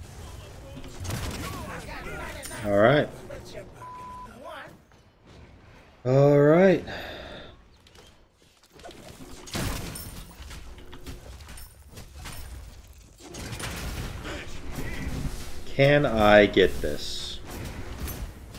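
A young man talks and exclaims into a close microphone.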